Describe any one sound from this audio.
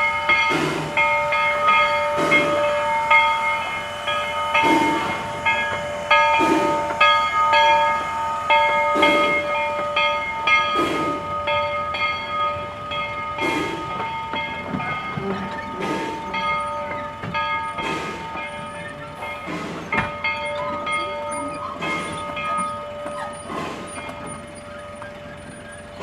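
Train wheels squeal on the rails with a steady, high ring.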